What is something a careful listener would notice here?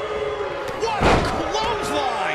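A body slams hard onto a wrestling ring mat.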